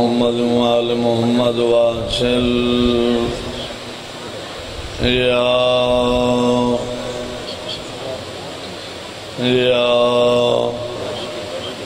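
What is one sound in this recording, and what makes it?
An elderly man chants in long, drawn-out phrases through a loudspeaker, with pauses between them.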